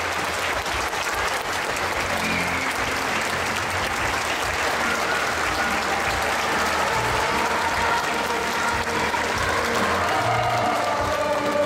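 A crowd claps loudly in a large echoing hall.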